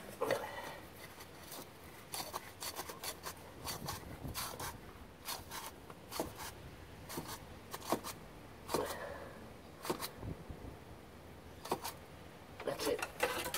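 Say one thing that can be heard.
A metal wrench clicks and scrapes against an oil filter.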